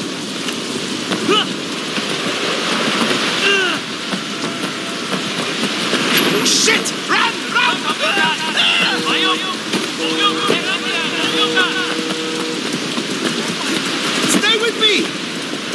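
Footsteps run quickly on wet pavement.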